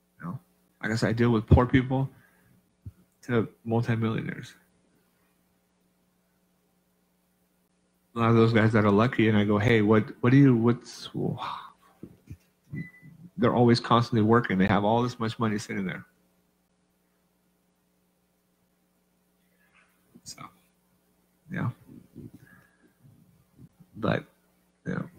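A man speaks calmly into a microphone, with pauses.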